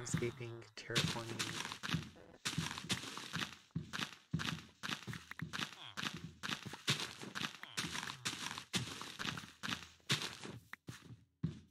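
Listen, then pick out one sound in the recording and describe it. Blocks of dirt break with soft crunching thuds.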